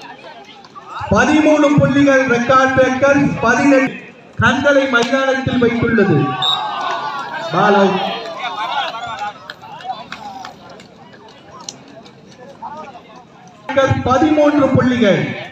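Men call out loudly to one another nearby.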